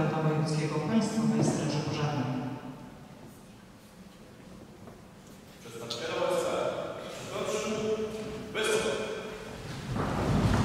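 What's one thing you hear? A man speaks formally through a loudspeaker in a large echoing hall.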